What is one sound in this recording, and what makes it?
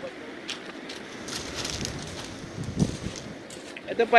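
Footsteps crunch on loose pebbles.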